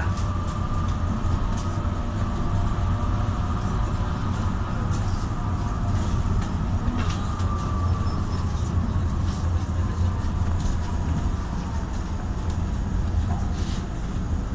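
A car engine hums steadily with road rumble from inside a moving vehicle.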